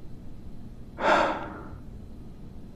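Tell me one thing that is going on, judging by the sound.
A young man sighs heavily close by.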